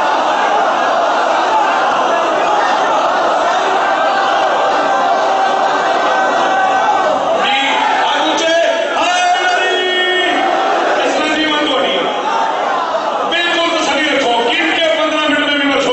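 A crowd of men chants along in answer.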